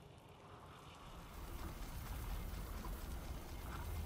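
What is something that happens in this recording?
A magical seal hums and rumbles as it glows open.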